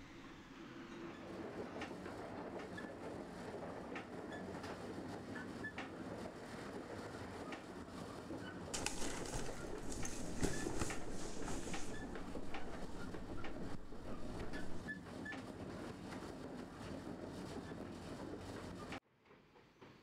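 A tram rumbles steadily while riding along.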